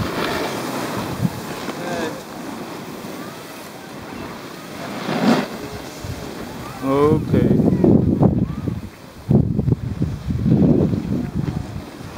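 A snowboard scrapes and hisses over packed snow.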